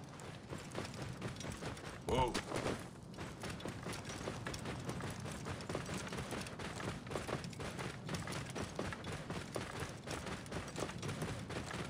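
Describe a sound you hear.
A camel's hooves plod steadily over sand.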